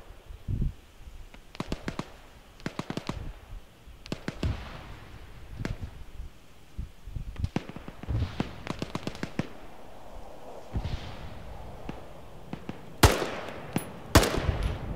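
Footsteps rustle through dry grass and brush.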